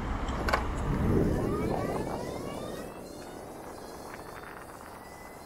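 An electric motorcycle's motor whines and rises in pitch as it speeds away.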